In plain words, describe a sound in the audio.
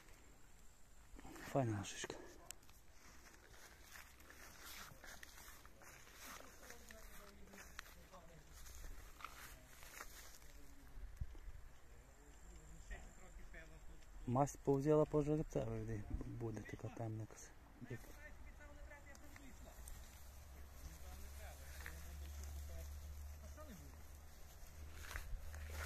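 Horses step softly through long grass.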